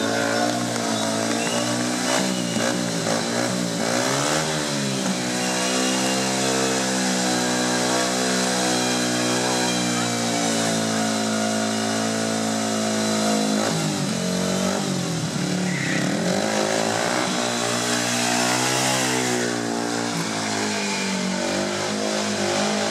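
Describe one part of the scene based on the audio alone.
A motorcycle engine revs loudly and steadily, rising and falling in pitch.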